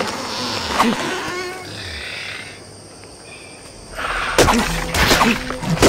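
Fists thump against a tree trunk.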